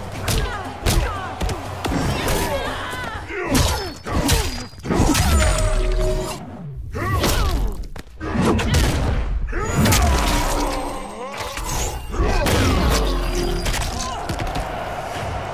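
Heavy blows land with loud thuds and crunches.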